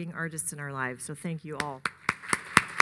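A middle-aged woman speaks into a microphone.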